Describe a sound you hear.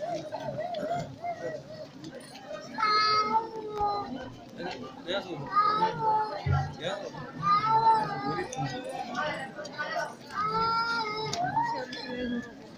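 A crowd of men and women sings a chant together outdoors.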